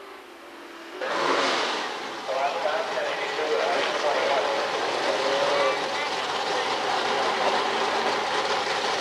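A drag racing car's engine rumbles and revs loudly close by.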